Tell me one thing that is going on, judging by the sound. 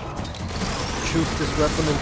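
A rotary machine gun fires in a rapid burst.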